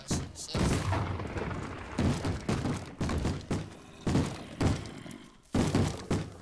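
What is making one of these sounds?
Sword blows thud again and again.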